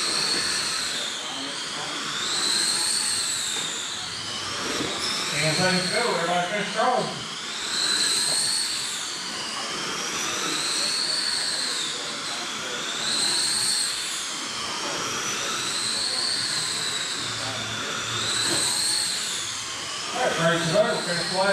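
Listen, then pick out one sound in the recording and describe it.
A small electric model car motor whines up close, rising and falling in pitch as it speeds up and slows down.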